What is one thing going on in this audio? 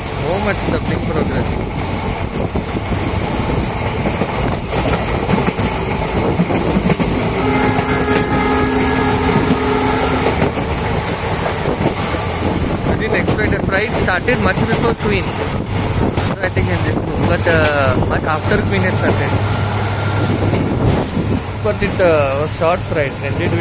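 A train rumbles and clatters steadily along the tracks.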